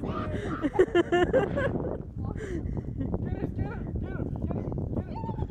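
Young women shout and laugh excitedly nearby outdoors.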